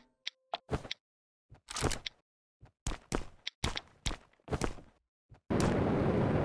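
Short game sound effects clatter and click as items are picked up and equipped.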